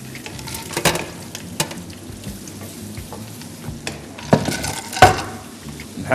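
A wooden spoon scrapes and knocks against a frying pan.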